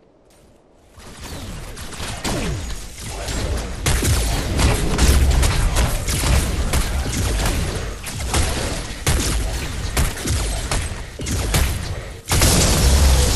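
Energy blasts crackle and boom repeatedly against a structure.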